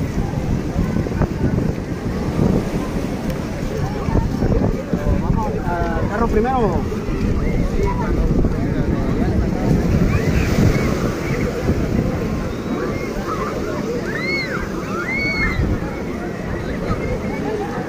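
Many people chatter and call out across a busy beach.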